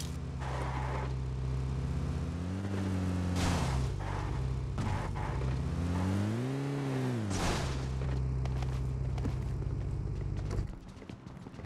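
A vehicle engine rumbles steadily and revs up and down.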